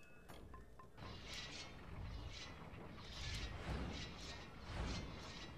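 A magic blast bursts with loud rushing whooshes.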